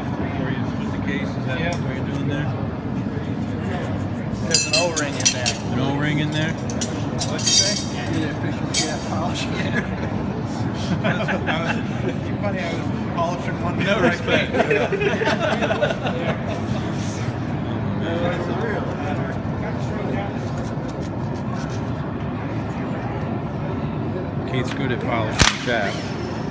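Metal parts clink and clatter as a man works on a machine.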